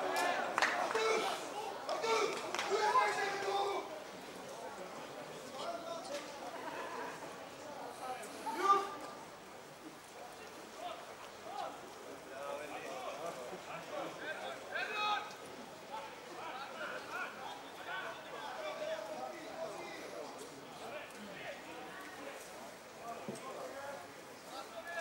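Footballers shout to each other across an open pitch outdoors.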